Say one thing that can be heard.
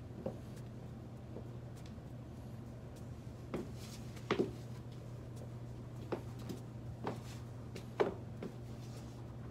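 High heels click on a wooden floor.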